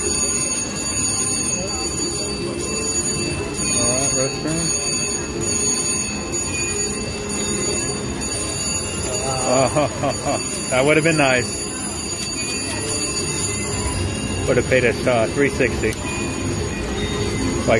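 A slot machine's reels spin and whir.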